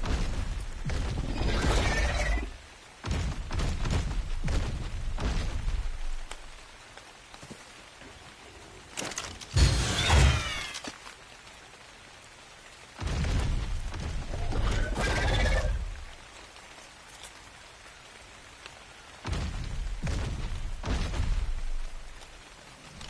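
A large creature stomps heavily, with deep thuds.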